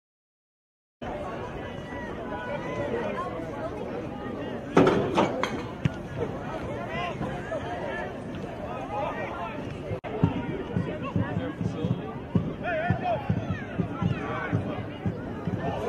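A crowd of spectators murmurs and calls out across an open field.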